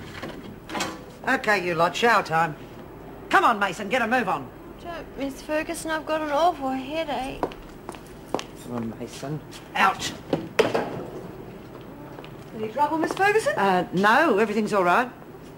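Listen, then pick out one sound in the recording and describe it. A woman speaks firmly and loudly in a room.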